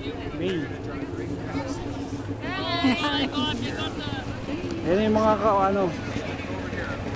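Young women laugh and talk close by.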